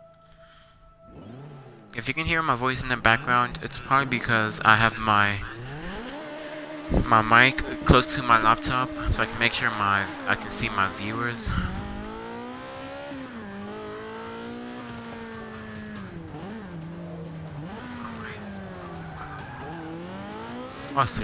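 A race car engine revs loudly and roars as the car speeds up and shifts gears.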